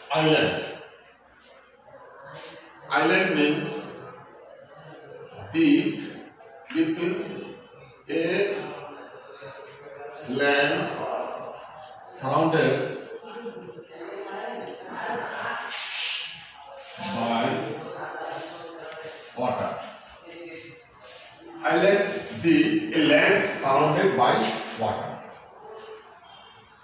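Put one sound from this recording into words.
A man speaks in a loud, steady teaching voice nearby.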